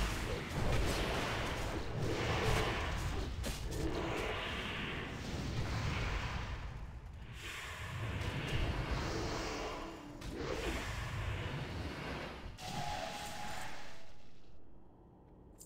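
Magic spells whoosh and crackle in loud bursts.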